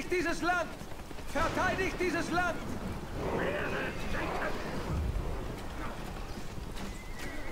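Swords clash and soldiers fight in a battle.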